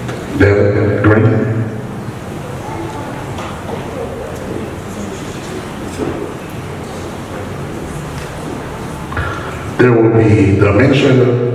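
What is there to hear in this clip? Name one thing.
A young man speaks into a microphone over loudspeakers in an echoing hall.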